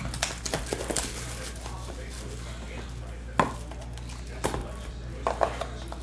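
A cardboard box lid slides off and knocks softly.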